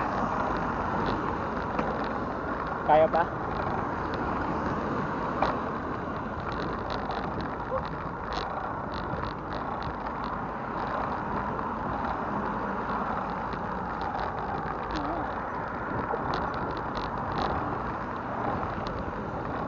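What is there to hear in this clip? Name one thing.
Wind rushes steadily past a moving bicycle outdoors.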